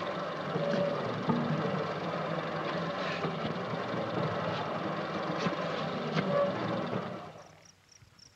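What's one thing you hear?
A machine whirs and rattles loudly.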